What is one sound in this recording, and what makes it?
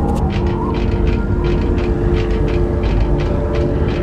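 Boots clank on the rungs of a metal ladder.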